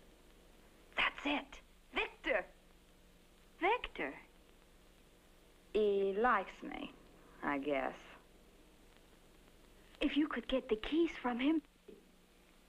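A second young woman answers in a soft voice.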